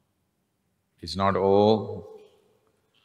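An elderly man chants a long, steady tone.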